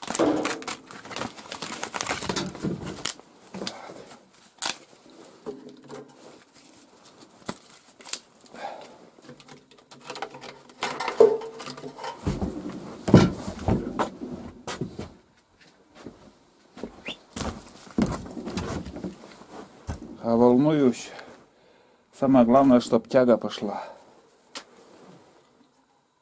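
Split logs knock and clatter as they are pushed into an iron stove.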